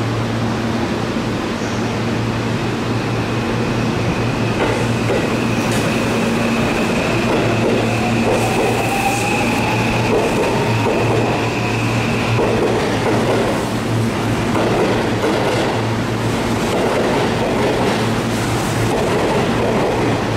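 An electric train hums and rumbles steadily through a station.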